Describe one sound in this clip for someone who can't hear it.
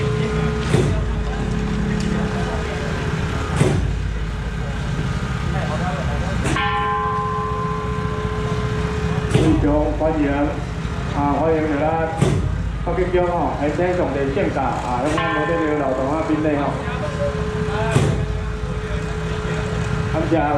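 A crowd of men chatter and call out outdoors.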